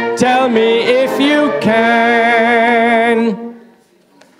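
A brass band plays a held closing chord in an echoing hall.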